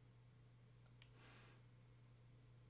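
A soft game menu chime rings.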